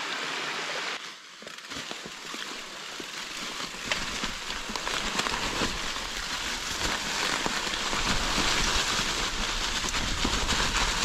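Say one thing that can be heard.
Bicycle tyres roll and crunch over dry leaves on a forest trail.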